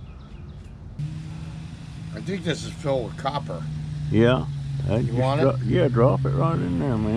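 An electric scooter motor hums steadily.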